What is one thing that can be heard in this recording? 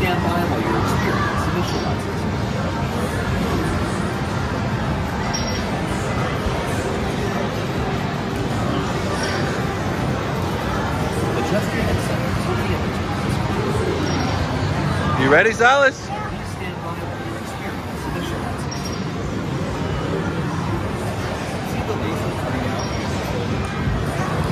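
Arcade machines beep and jingle in a busy, noisy hall.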